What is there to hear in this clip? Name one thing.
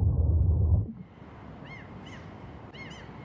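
Waves wash gently on a shore.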